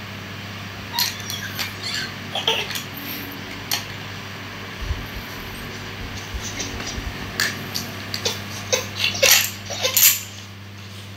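A plastic rattle toy clicks and rattles.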